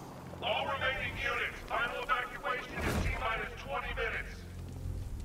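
Wind rushes loudly past a gliding figure.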